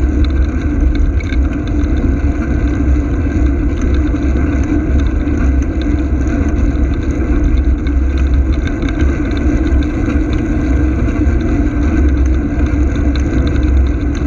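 Wind rumbles loudly across a moving microphone outdoors.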